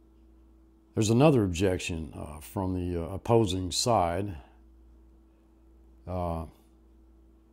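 An older man speaks calmly and slowly, close to a microphone.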